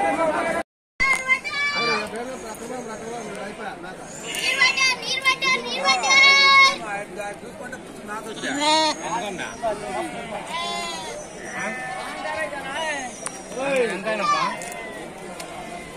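Sheep bleat loudly close by.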